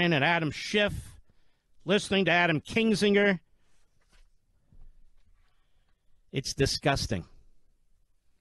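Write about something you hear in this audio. A man speaks forcefully into a microphone in short bursts.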